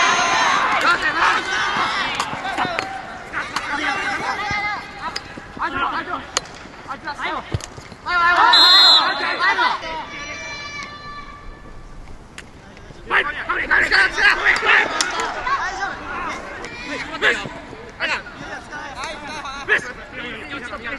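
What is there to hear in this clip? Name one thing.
Young men shout across an outdoor field.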